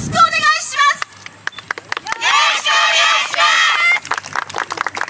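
A group of young people shout a chant together outdoors.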